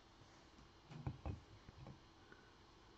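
Hard plastic card holders click as they are set down on a table.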